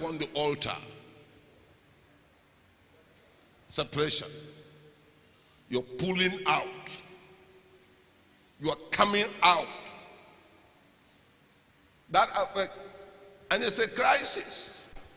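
A middle-aged man preaches forcefully in short shouted bursts through a microphone and loudspeakers, echoing in a large hall.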